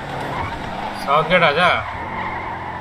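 Tyres screech as a car skids into a slide.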